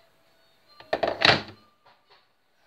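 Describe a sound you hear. A kettle is set down on a counter with a thud.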